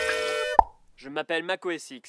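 A man speaks clearly and with animation, close by.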